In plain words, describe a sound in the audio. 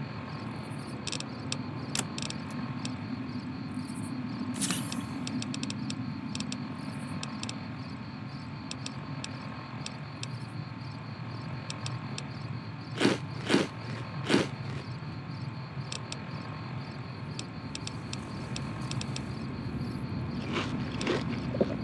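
Soft menu clicks tick as items are scrolled through.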